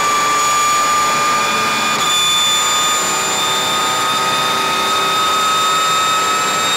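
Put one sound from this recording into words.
A race car engine screams loudly at high revs, its pitch climbing slowly.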